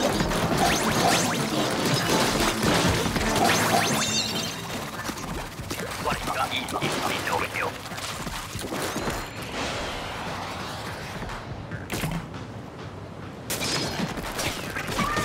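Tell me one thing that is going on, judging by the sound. Game ink splatters and squelches with busy sound effects.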